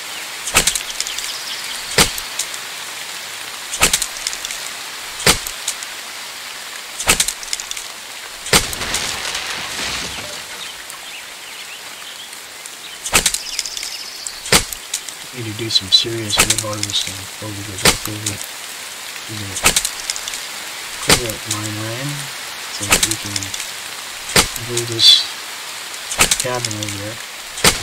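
An axe chops into a tree trunk with sharp, repeated thuds.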